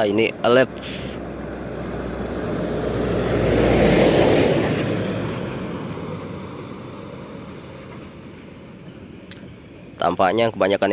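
A bus engine rumbles closer, roars past and fades away down the road.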